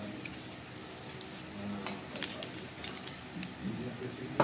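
Fingers pull apart crisp roasted meat with small cracks and crunches.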